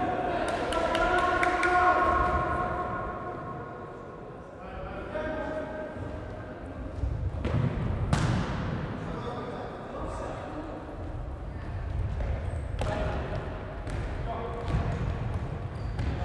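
A ball thuds off the floor and is kicked in a large echoing hall.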